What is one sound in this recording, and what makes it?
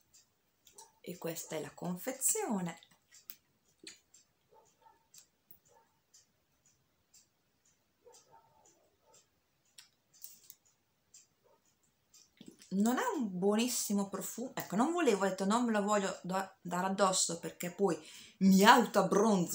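A young woman talks calmly and with expression, close to the microphone.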